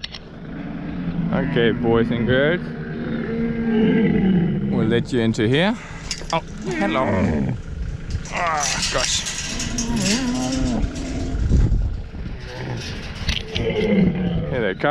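Camels groan and bellow close by.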